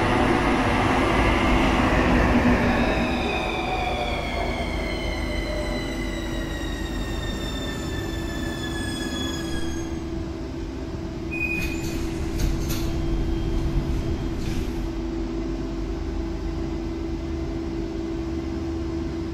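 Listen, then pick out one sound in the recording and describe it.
A train's engine hums steadily while it stands.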